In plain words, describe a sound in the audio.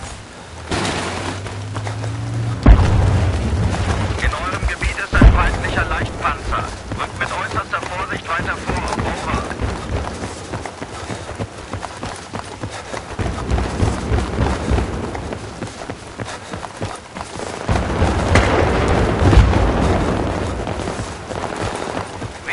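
Footsteps run quickly on hard pavement.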